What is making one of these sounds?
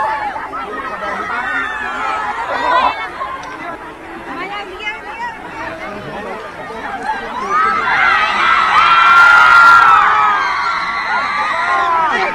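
A crowd of children and adults chatters and cheers excitedly nearby.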